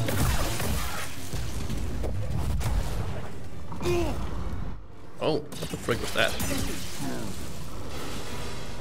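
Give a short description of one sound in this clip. A lightsaber hums and whooshes as it swings.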